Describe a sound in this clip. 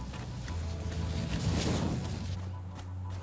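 A laser beam hisses and crackles.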